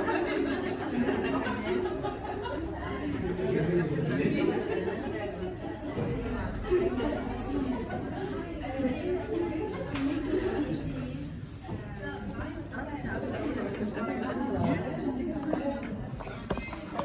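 Several women chat and laugh nearby.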